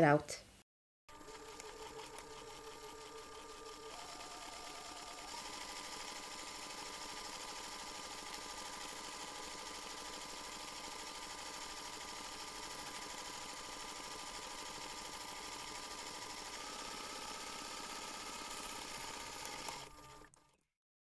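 A sewing machine runs steadily, stitching fabric.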